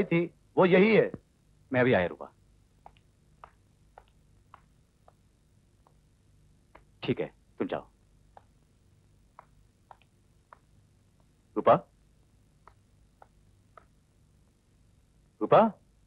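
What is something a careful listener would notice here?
A man speaks firmly in short bursts nearby.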